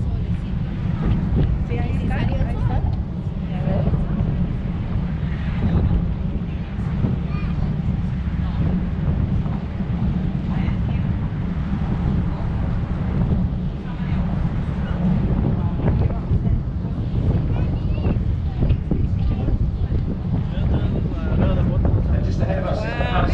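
A boat's engine rumbles low and steady.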